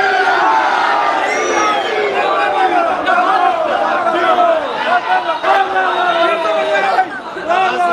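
A crowd cheers and calls out in praise.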